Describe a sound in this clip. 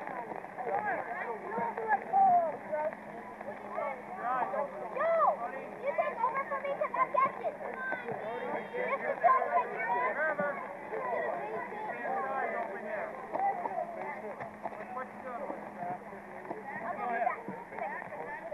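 Children and adults chatter and call out nearby, outdoors.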